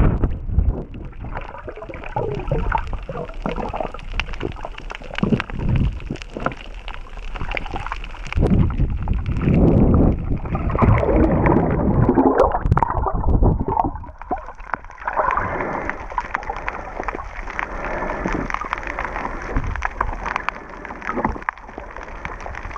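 Water rushes and swirls in muffled bursts, heard from underwater.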